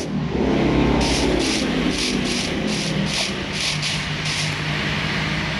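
Footsteps thud softly on grass at a steady pace.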